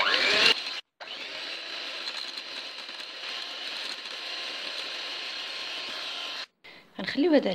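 An electric hand mixer whirs steadily as it beats a batter.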